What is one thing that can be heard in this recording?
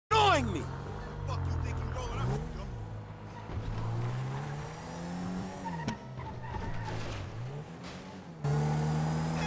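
A car engine revs up and down repeatedly as the car speeds along.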